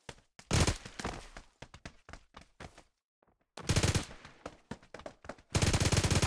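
A submachine gun fires rapid bursts, with shots echoing.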